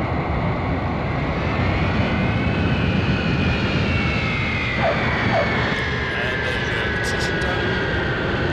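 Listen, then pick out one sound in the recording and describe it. A jet engine whines high and slowly drops in pitch.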